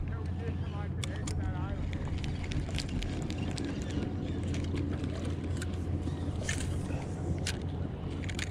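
A fishing reel clicks and whirs.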